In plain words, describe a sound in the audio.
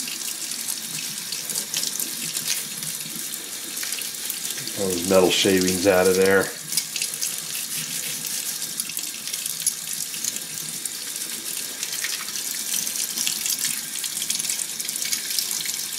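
A toothbrush scrubs against small metal parts.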